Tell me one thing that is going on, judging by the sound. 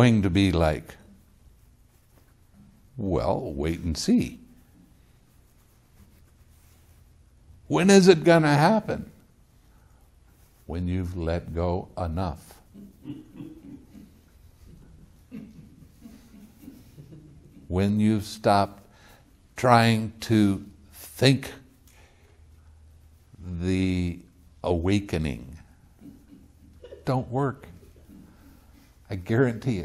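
An elderly man speaks calmly and thoughtfully into a close microphone, with pauses.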